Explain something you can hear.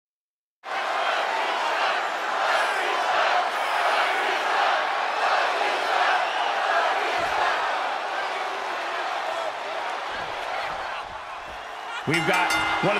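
A large crowd cheers and roars loudly in a big echoing arena.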